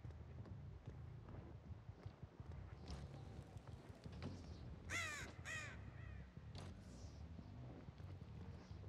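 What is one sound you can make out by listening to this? Heavy footsteps thud slowly on a hard floor.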